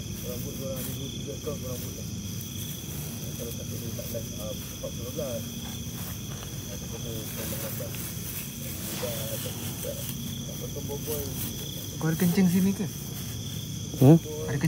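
A hand rustles through short grass.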